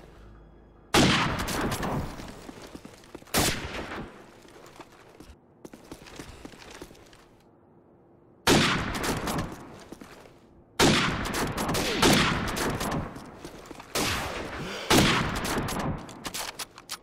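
A sniper rifle fires loud, sharp shots that echo away.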